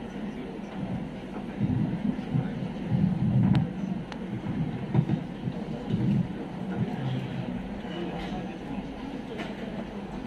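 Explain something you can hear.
A man speaks quietly at a distance in an echoing hall.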